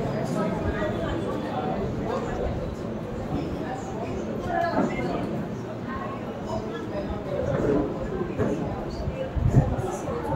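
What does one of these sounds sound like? A middle-aged woman sings into a microphone.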